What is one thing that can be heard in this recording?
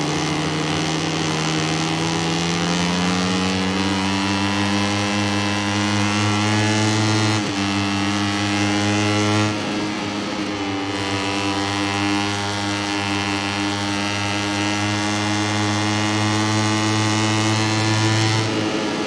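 A motorcycle engine roars at high revs, rising in pitch as it speeds up.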